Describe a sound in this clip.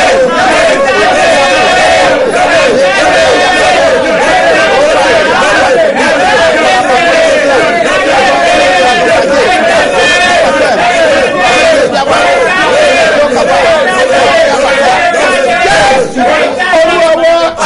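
A woman sings along through a microphone.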